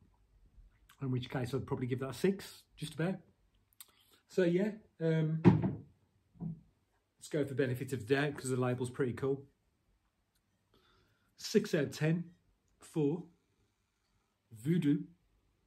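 A man talks calmly and close by, in short bursts.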